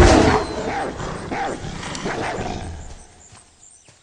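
A bear growls and roars close by.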